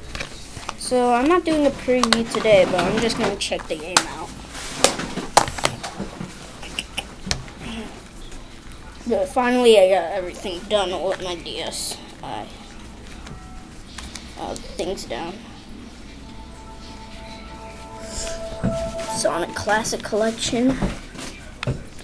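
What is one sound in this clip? A young boy talks close up, with animation.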